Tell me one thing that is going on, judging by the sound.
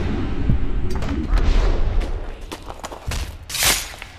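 Bodies thud onto a stone floor.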